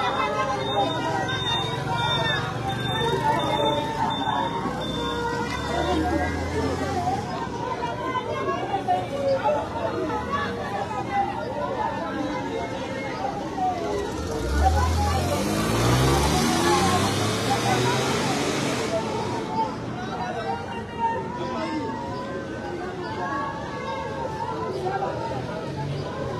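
A crowd of men and women talk and shout outdoors close by.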